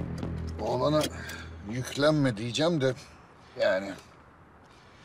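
A middle-aged man speaks in a low, strained voice close by.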